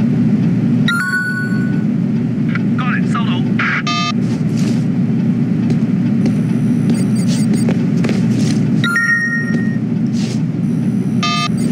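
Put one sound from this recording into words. A phone chimes with short electronic beeps.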